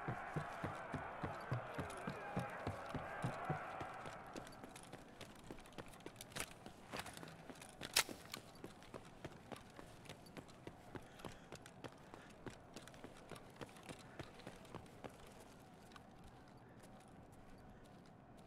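Footsteps thud quickly and evenly on a hard floor.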